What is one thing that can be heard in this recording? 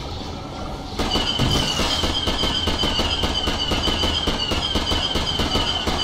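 A blaster rifle fires a rapid burst of shots.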